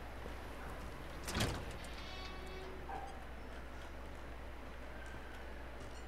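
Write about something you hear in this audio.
A heavy metal door swings open.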